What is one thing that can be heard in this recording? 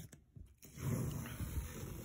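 Tape peels off a wall with a tearing rasp.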